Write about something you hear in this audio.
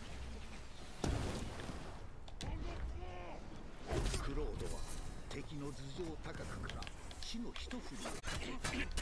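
Explosions burst with deep booms.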